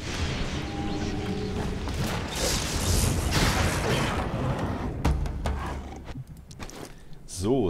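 Swords clash and magic effects whoosh in a fight.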